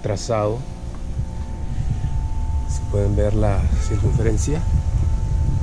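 A man speaks calmly close by, explaining.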